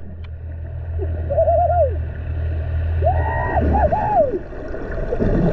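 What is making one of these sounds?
Spinner dolphins whistle underwater.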